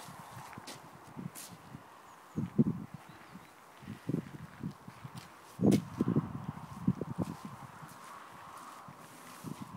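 A dog snuffles and sniffs at the grass close by.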